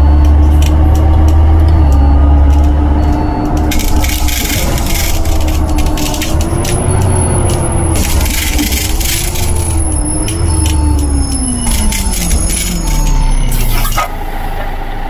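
A bus engine drones, rising and falling in pitch, then winds down as the bus slows.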